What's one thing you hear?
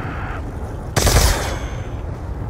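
A gun fires a loud burst of shots.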